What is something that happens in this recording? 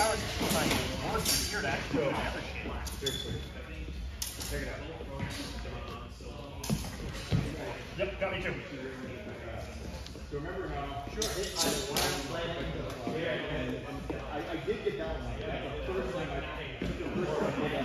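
Swords clack together in quick exchanges in an echoing hall.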